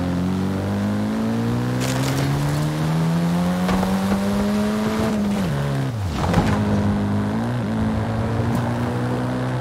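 A car engine revs steadily, rising in pitch, then drops as the car shifts gear and picks up again.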